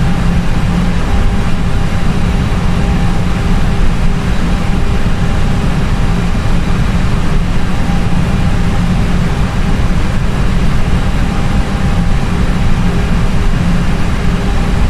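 Jet engines drone steadily, heard from inside a cockpit.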